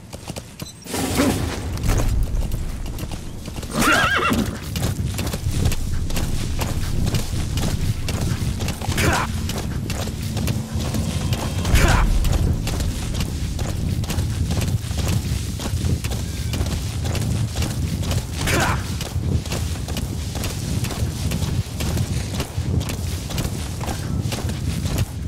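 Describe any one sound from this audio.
A horse gallops with quick, heavy hoofbeats on dry ground.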